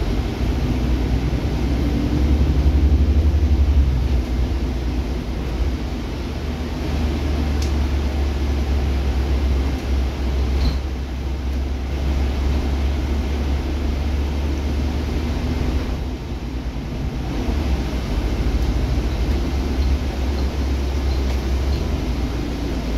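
A natural-gas city bus engine rumbles low, heard from inside while driving.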